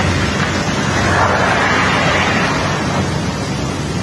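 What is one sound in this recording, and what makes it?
A large heap of gravel collapses and slides down with a loud rushing rumble.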